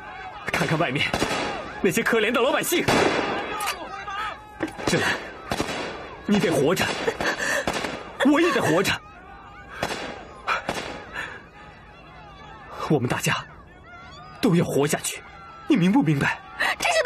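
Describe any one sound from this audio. A young man speaks urgently and forcefully, close by.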